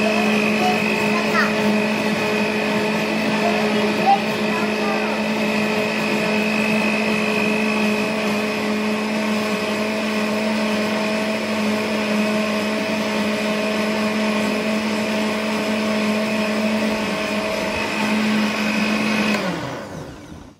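A blender whirs steadily, then stops.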